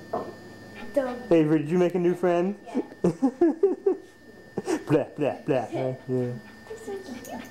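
A young girl talks to a dog, close by.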